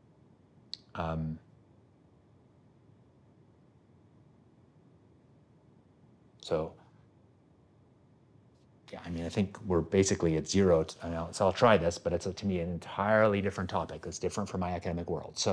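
A middle-aged man speaks calmly and thoughtfully, close to a microphone.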